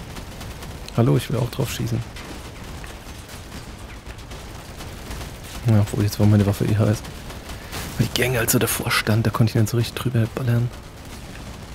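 Heavy guns fire in quick bursts.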